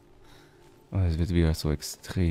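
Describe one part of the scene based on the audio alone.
A man speaks close into a microphone.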